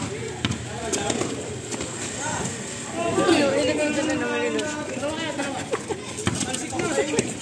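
A basketball bounces on concrete outdoors.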